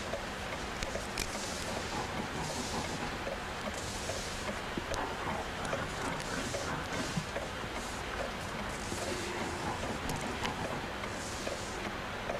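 An elderly man rubs his head and face with his hands.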